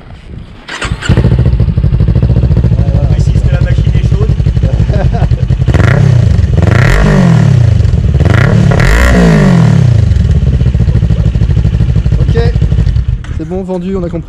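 A motorcycle engine starts with a sudden roar and idles with a deep, throbbing rumble.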